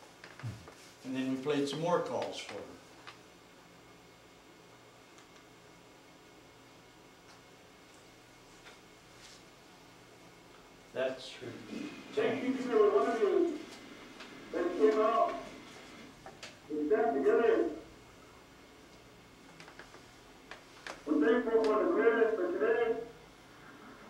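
An older man talks calmly, pausing between phrases.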